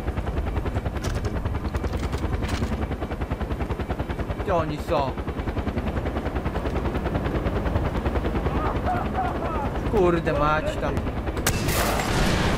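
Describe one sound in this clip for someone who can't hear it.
A helicopter's rotor chops steadily overhead.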